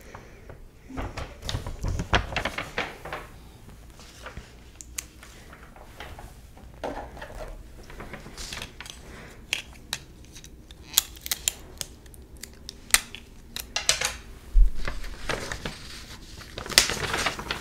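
Paper rustles and crinkles as pages are handled close by.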